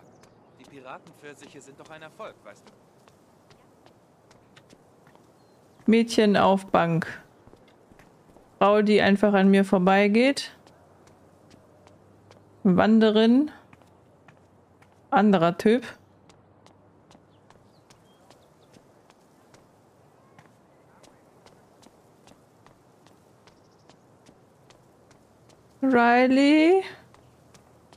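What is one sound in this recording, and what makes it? A young woman talks with animation into a microphone, in short bursts.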